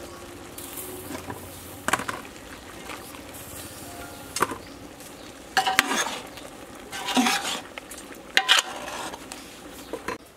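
Food bubbles and sizzles in a pot.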